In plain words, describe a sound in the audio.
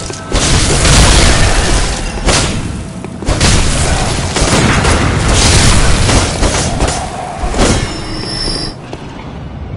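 Blades slash and clash in a fierce fight.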